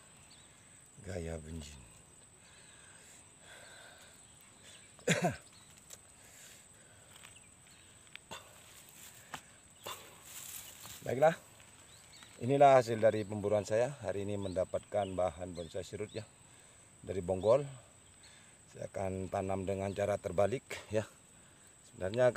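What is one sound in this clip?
A man speaks calmly close by, in short bursts with pauses.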